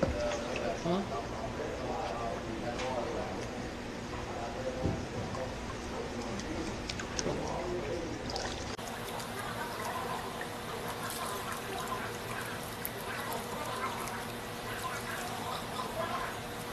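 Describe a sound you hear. Water sloshes and splashes as a pan is swirled in a trough.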